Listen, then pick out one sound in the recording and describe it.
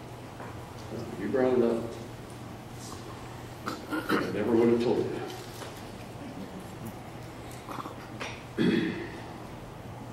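A middle-aged man speaks calmly to an audience, heard in a large room with a slight echo.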